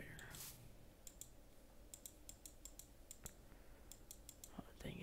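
Short, sharp clicks tick again and again.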